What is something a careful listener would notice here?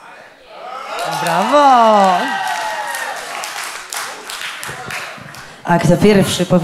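A crowd cheers and whoops in an echoing hall.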